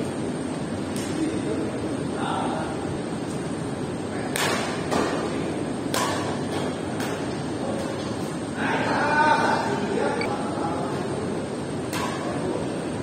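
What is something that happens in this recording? Shuttlecocks are struck sharply by rackets, again and again.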